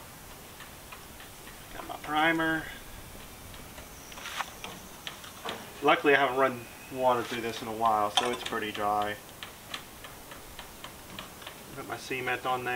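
Plastic pipe parts knock and click.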